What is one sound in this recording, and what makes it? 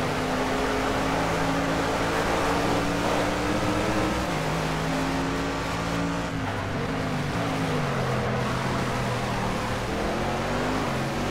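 A racing car engine roars loudly, its pitch rising through the gears and dropping sharply under braking.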